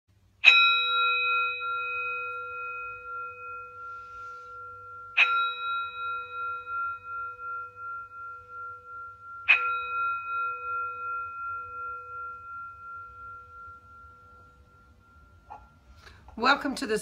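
A singing bowl is struck three times and rings out, slowly fading.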